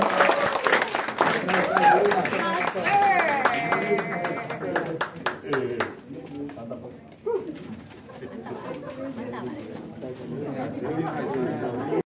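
Several people talk at once nearby.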